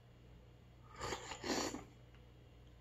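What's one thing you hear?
A young man slurps soup loudly from a spoon, close by.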